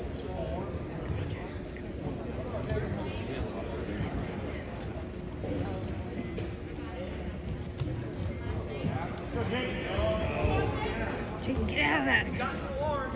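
Spectators murmur and call out in a large echoing gym.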